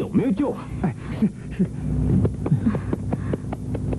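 An elderly woman speaks anxiously.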